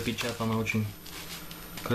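Plastic wrap crinkles as it is handled.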